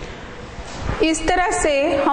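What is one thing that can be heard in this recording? A woman speaks in a clear, explaining voice nearby.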